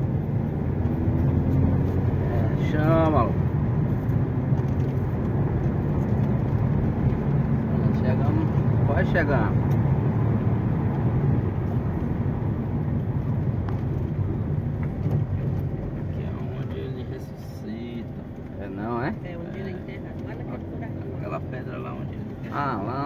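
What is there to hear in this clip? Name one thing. Tyres rumble over a paved road.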